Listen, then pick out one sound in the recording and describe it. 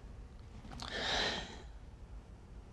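An elderly woman sighs heavily.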